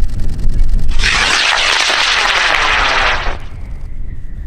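A small rocket motor ignites with a loud rushing roar that cuts off after a few seconds.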